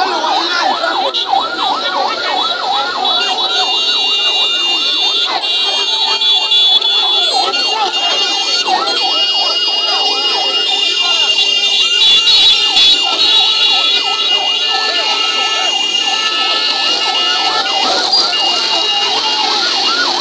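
Motorcycle engines idle and rev nearby.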